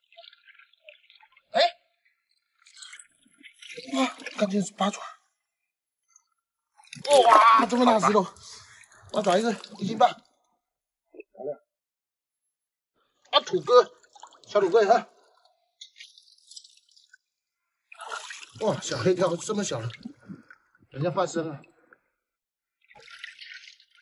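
Water splashes as hands dig in a shallow pool.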